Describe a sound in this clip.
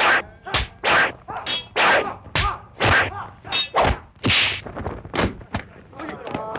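Rapid blows and thuds land in a fight.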